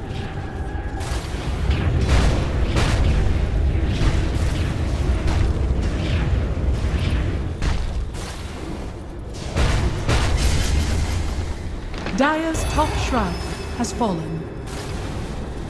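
Magic spells crackle and boom during a fantasy battle.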